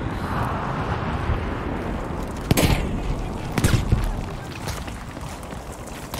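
A rifle fires loud gunshots close by.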